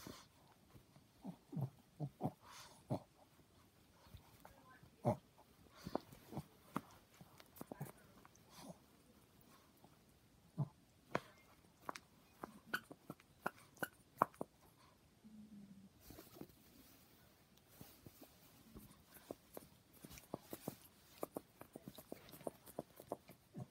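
A small dog chews and gnaws on a soft toy close by.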